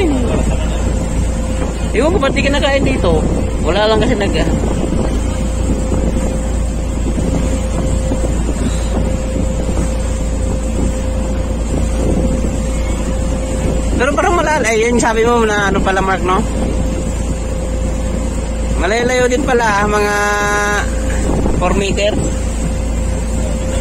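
Wind rumbles steadily and loudly outdoors.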